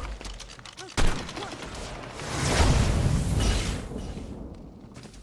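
A blast booms and hisses, then slowly fades.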